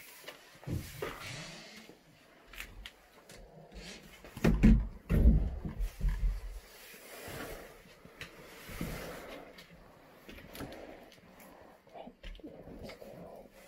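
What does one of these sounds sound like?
Fabric rustles and brushes close by.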